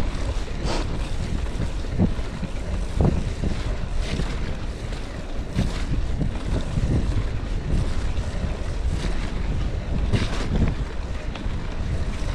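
Wind rumbles loudly across a microphone outdoors.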